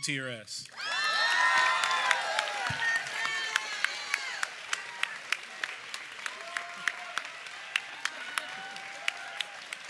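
An audience claps.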